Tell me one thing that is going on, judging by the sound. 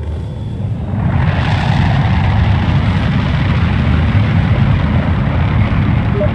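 A spacecraft's thrusters roar loudly overhead.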